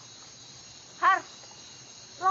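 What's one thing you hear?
A young woman cries out in alarm, close by.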